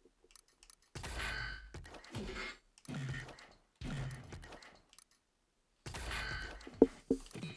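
Menu sounds whoosh as panels slide across.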